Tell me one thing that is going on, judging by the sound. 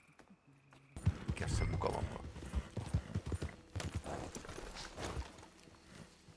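A horse's hooves thud along as it gallops over soft ground.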